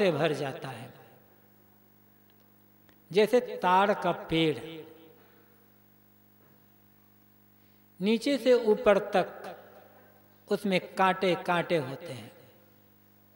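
An elderly man speaks calmly into a microphone in short phrases with long pauses.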